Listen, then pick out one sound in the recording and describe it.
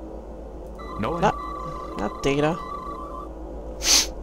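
An electronic device gives a short warbling beep.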